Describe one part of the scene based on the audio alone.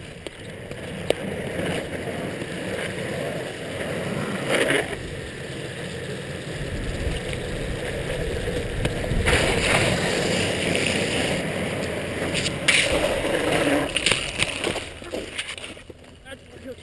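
Skateboard wheels roll and rumble on rough asphalt.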